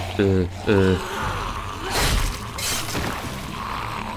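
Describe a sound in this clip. A zombie growls and snarls.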